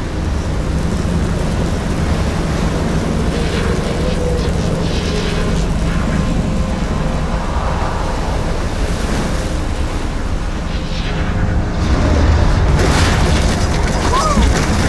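A strong wind roars and howls steadily.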